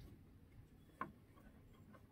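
A wooden strip knocks lightly against a board.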